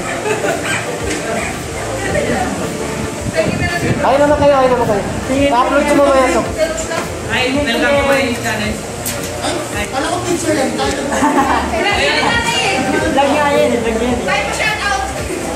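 Young men and women chatter and laugh together nearby.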